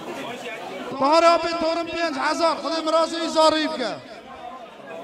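A man chants in a long, drawn-out voice through a microphone.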